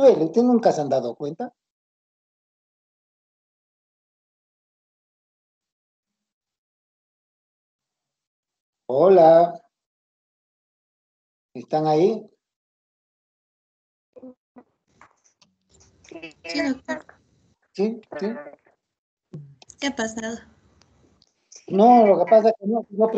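A young man speaks in short bursts over an online call.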